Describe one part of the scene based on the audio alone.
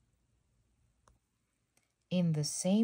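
A book page turns with a soft rustle.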